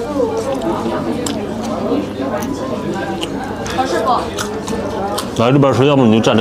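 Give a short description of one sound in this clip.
A young man chews food noisily.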